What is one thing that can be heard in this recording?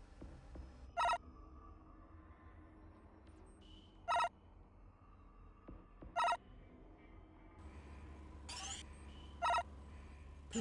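Short electronic beeps sound as menu items are clicked.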